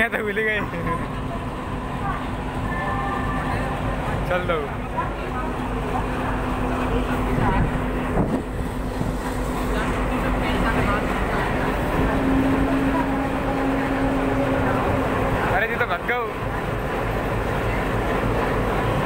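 A diesel locomotive engine rumbles and hums steadily close by.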